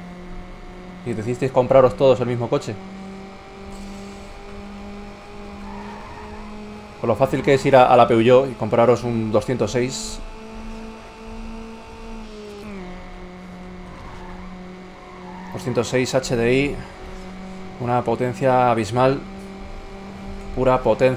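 A racing car engine drones steadily at high speed, dipping briefly in pitch as it shifts up a gear.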